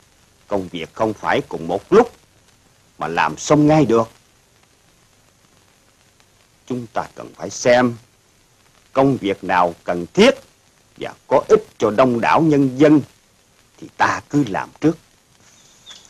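An elderly man speaks loudly and with animation.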